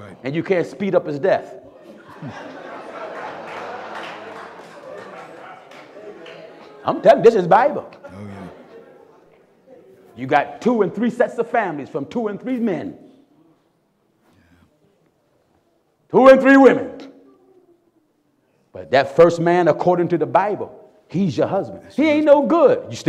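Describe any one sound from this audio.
A man preaches loudly and with animation through a microphone, with pauses between phrases.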